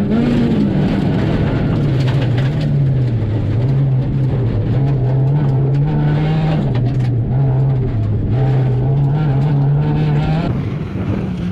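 A rally car engine roars loudly from inside the cabin, revving up and down.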